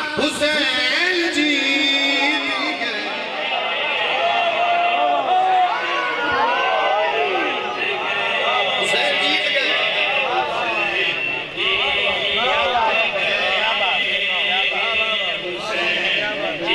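A young man speaks with passion through a microphone, his voice loud and echoing over loudspeakers.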